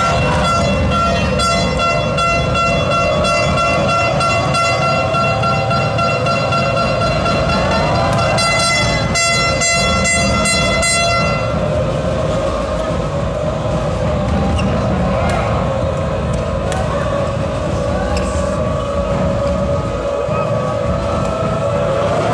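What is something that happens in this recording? A large crowd cheers and shouts throughout in a big echoing hall.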